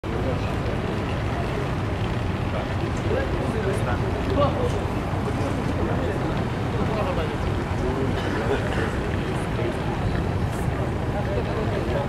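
Suitcase wheels roll over pavement.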